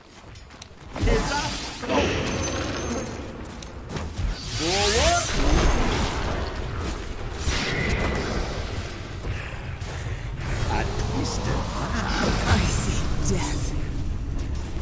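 Game spell effects and fighting sounds crash and clash.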